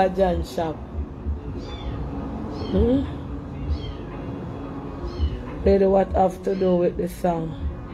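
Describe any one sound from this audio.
A young woman speaks close to a phone microphone, with animation.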